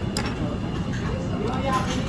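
A spoon scoops through a bowl of food.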